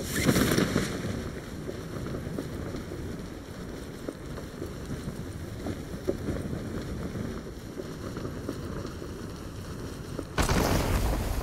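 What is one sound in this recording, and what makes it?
Wind rushes steadily during a parachute descent.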